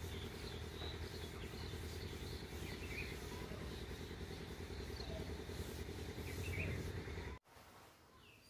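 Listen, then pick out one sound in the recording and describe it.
A cloth rubs across a wooden surface.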